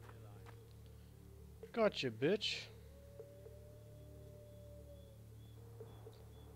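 Footsteps pad softly on grass.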